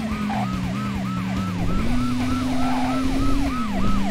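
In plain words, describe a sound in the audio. Tyres screech as a car skids through a turn.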